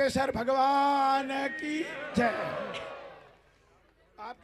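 A man sings loudly through a loudspeaker, with an echo.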